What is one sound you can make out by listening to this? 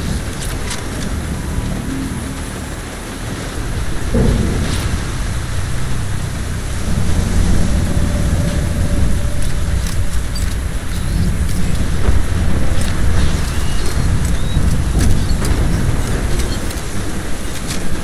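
Stormy sea waves roar and crash.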